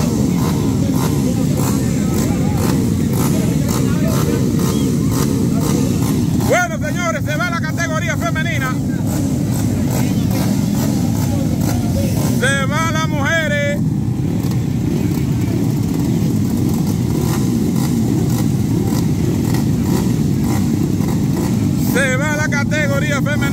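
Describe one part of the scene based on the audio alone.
Motorcycle engines idle and rev loudly nearby.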